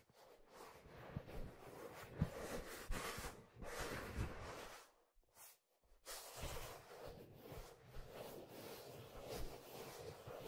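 Fingertips tap softly on leather.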